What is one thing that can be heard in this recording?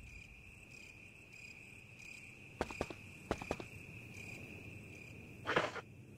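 Footsteps scrape on a hard floor.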